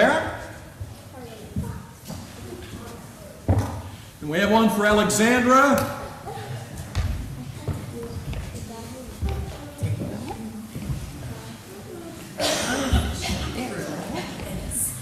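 A young man speaks through a microphone in a large echoing hall.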